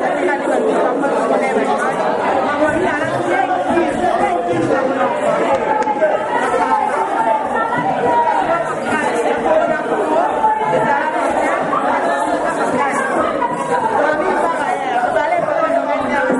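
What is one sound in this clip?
A woman sings loudly close by.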